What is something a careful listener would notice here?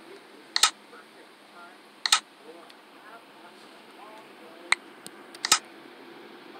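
A game menu clicks sharply several times.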